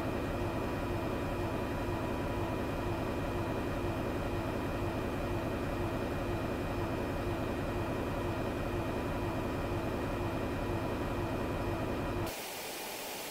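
Jet engines hum in a low, steady drone inside an airliner cockpit while cruising.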